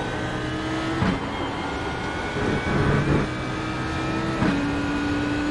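A racing car's gearbox clunks sharply as it shifts up.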